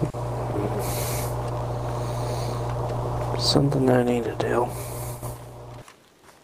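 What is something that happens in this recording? Footsteps crunch softly through grass.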